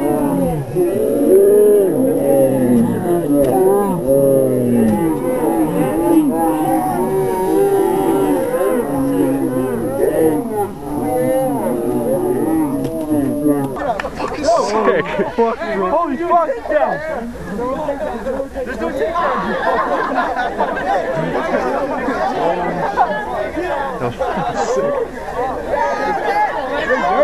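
A crowd of young men and women shouts and cheers loudly outdoors.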